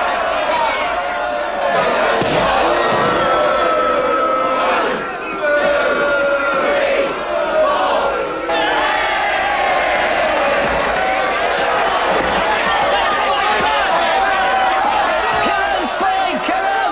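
A large crowd of men shouts and cheers loudly throughout.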